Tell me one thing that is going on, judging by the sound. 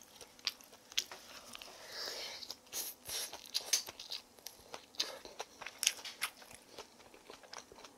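A young woman chews and slurps food close up.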